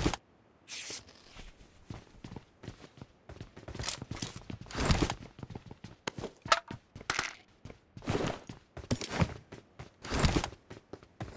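Footsteps thud and scuff on a hard floor.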